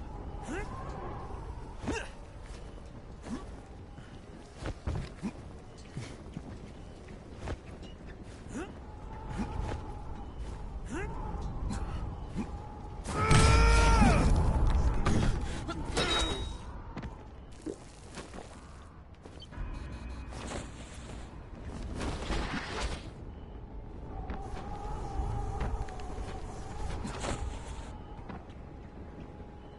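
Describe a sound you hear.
Footsteps thud quickly across roof tiles.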